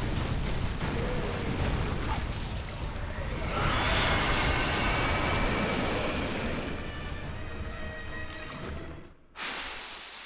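A huge beast roars and thrashes loudly.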